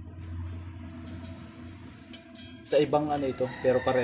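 A metal disc scrapes and clanks as a hand handles it.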